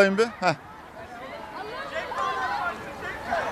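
A crowd of teenagers shout and cheer outdoors.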